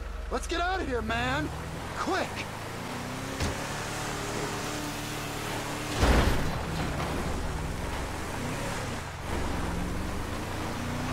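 A truck engine rumbles as it drives over rough gravel.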